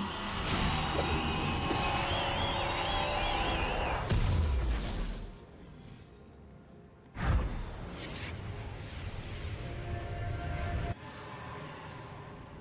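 Game sound effects whoosh and chime during a fight.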